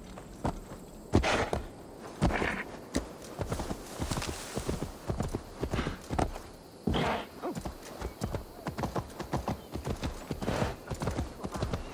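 Tall plants rustle as a horse pushes through them.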